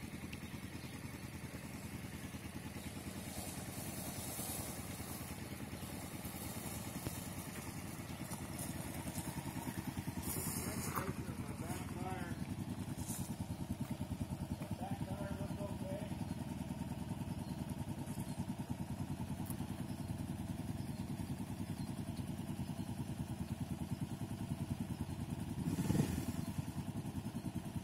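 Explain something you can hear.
A motorcycle engine idles with a steady low rumble close by.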